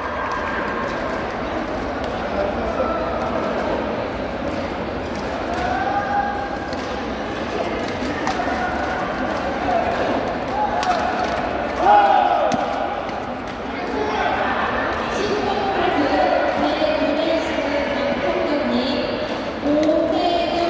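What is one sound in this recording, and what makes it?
Sports shoes squeak on the court floor.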